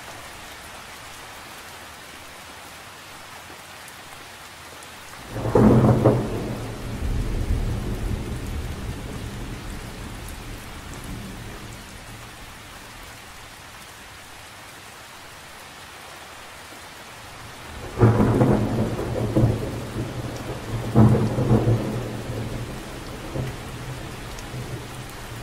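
Rain patters steadily on the surface of a lake outdoors.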